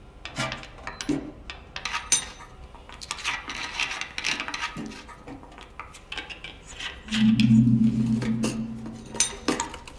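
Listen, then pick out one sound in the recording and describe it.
A hammer taps quickly and repeatedly on metal.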